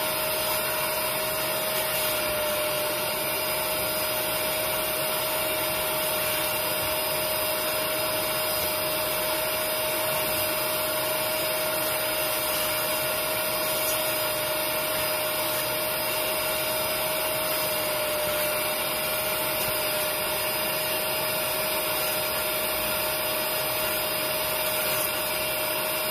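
A vacuum cleaner hums and whines steadily close by.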